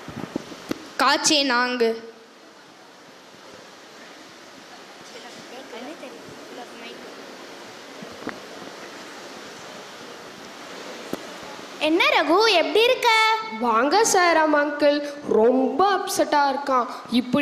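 A young boy speaks through a microphone.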